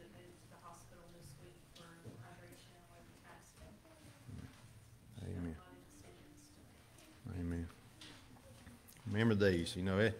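A man speaks calmly into a microphone in a large echoing room.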